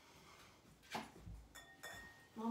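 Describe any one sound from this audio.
Glass clinks against a glass pitcher.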